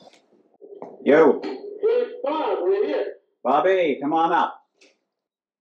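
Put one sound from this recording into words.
A young man speaks close by in a low, muffled voice.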